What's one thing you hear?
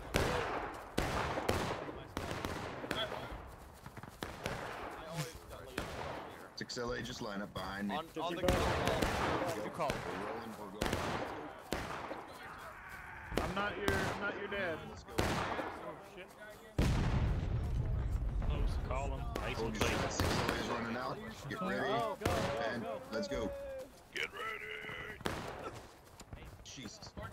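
Rifle shots crack repeatedly all around, some near and some distant.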